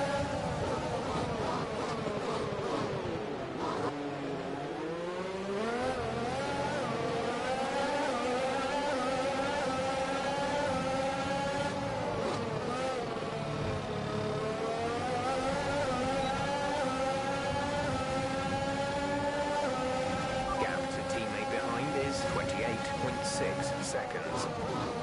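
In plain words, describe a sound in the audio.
A racing car engine screams, its pitch falling as it brakes and rising again as it speeds up.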